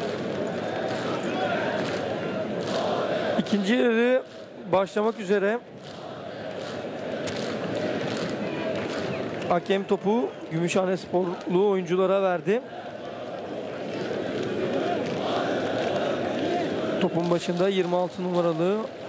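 A crowd murmurs and calls out across an open stadium.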